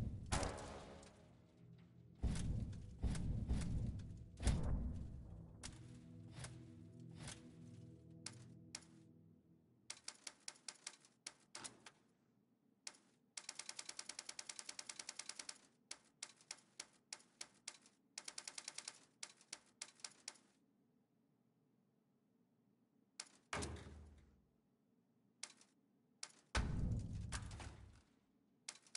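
Short menu clicks tick, sometimes in quick bursts.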